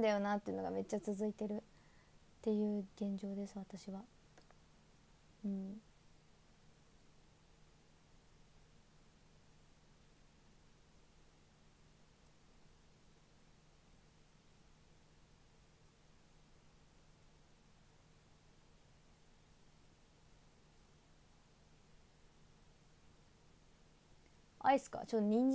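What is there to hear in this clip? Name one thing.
A young woman speaks quietly, close to a microphone.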